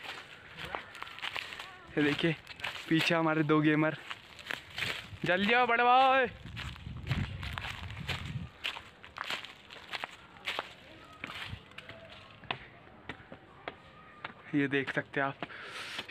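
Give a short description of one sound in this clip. Footsteps crunch on the ground while walking.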